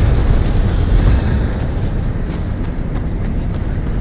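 Heavy armoured footsteps clank on stone.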